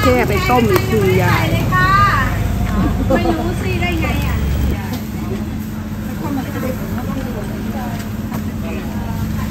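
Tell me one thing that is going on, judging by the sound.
An elderly woman talks and laughs cheerfully close by.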